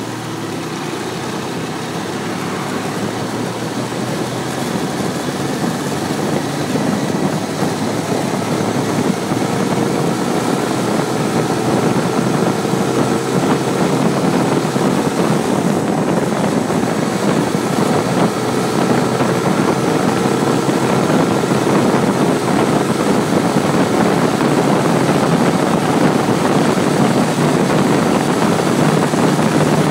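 Wind roars loudly against a microphone and grows stronger.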